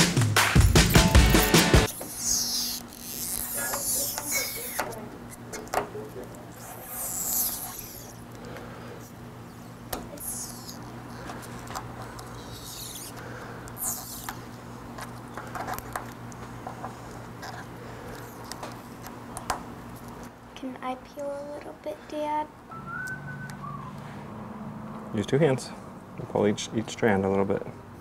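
Fingers press plastic letters onto a car's boot with soft taps and scrapes.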